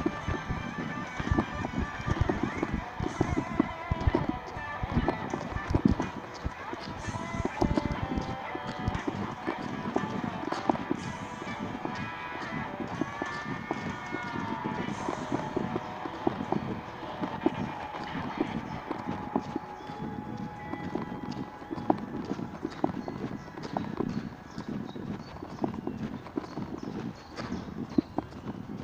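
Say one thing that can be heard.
Skateboard wheels rumble steadily over concrete.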